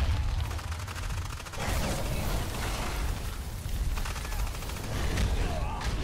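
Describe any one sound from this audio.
A monster breathes out a roaring burst of fire.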